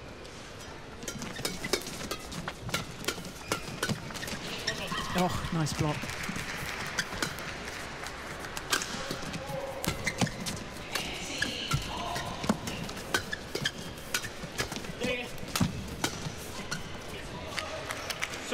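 Shuttlecocks are struck sharply by rackets in a fast rally.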